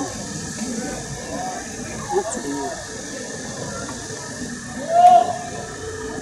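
A group of people chatter nearby outdoors.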